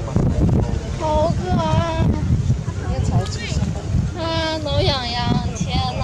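A baby monkey squeaks in short, high, wavering cries.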